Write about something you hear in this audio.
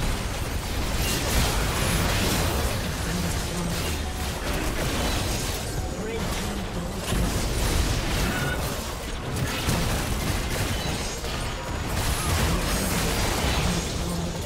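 An explosion booms as a tower falls.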